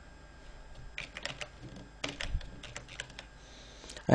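A keyboard clatters with quick typing keystrokes.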